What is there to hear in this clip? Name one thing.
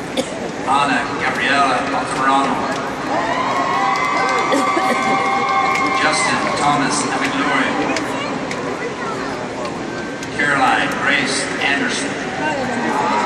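A crowd cheers and whistles in bursts.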